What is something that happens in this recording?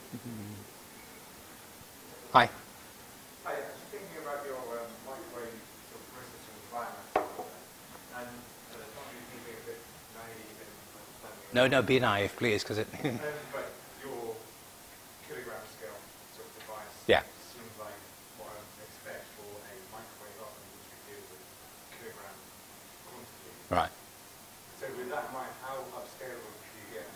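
A man lectures calmly, heard at a distance in a room with some echo.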